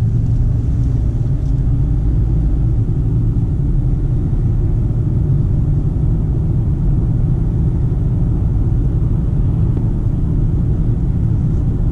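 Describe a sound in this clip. A car engine hums steadily from inside the cabin as the car drives along.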